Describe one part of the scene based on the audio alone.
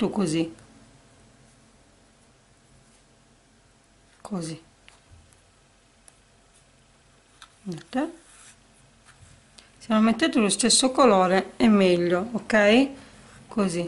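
Fabric rustles softly as it is folded and smoothed.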